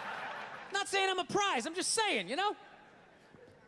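A young man laughs loudly up close.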